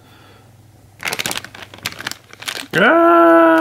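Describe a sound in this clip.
A plastic bag crinkles and rustles under a finger.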